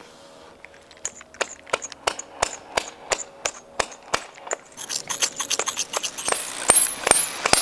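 A hammer strikes a metal peg in steady, ringing blows.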